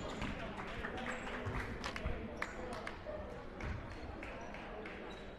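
A crowd of spectators murmurs in the stands.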